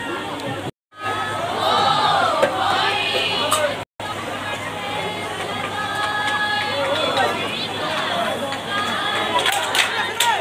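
A group of young women sing together.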